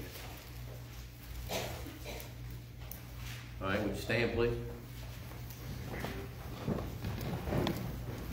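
An elderly man speaks calmly through a microphone in a room with some echo.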